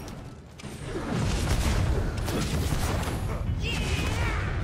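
A fiery blast roars loudly.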